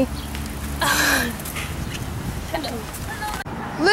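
A boy speaks cheerfully close by.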